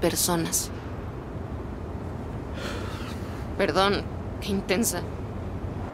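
A young woman speaks calmly from close by.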